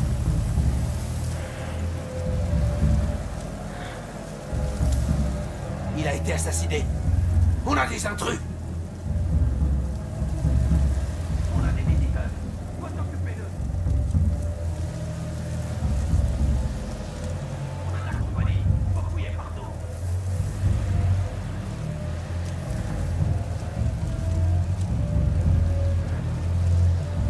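Tall grass rustles softly as someone creeps through it.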